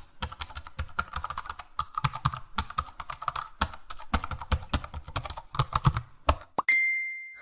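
Fingers tap rapidly on a laptop keyboard.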